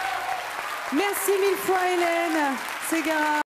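A woman sings through a microphone in a large hall.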